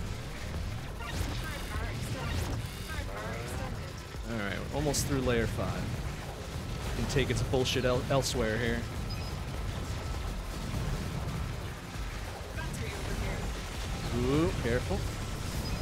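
Video game laser shots and explosions crackle rapidly.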